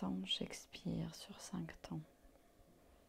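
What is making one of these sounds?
An older woman speaks calmly and softly into a clip-on microphone.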